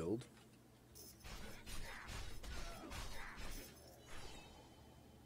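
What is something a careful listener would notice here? Magic spells crackle and whoosh in a game.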